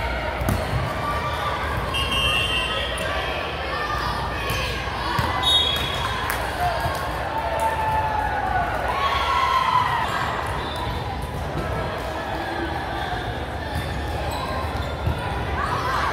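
Volleyballs thump off hands and arms.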